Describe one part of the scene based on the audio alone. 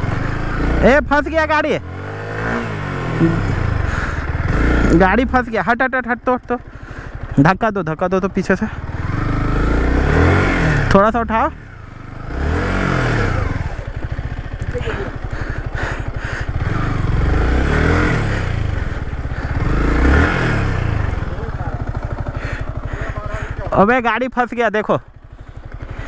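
A motorcycle engine revs up sharply in short bursts, again and again.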